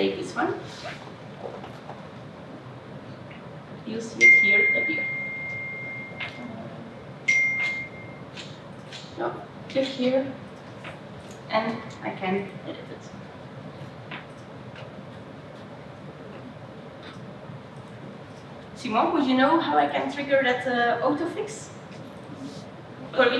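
A woman speaks into a microphone in a large echoing hall.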